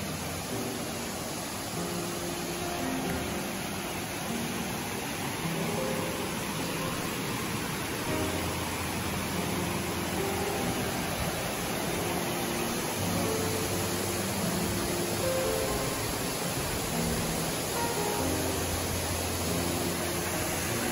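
A shallow stream babbles and splashes over rocks nearby.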